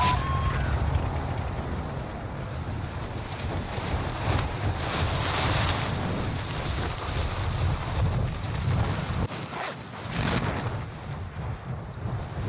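Wind roars past during a freefall.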